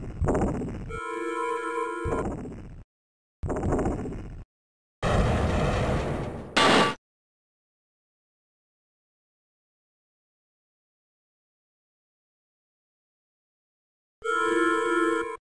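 An electronic alert beeps in short steady tones.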